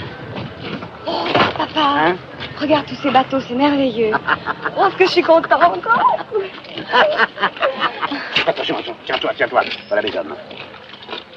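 A middle-aged man talks excitedly up close.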